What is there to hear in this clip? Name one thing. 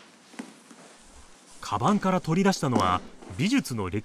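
Books thump down onto a table.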